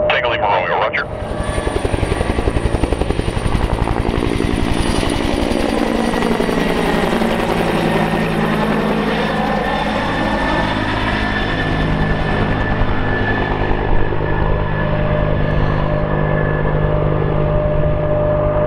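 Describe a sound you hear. A helicopter's engine whines, rising and falling in pitch as it passes and flies off.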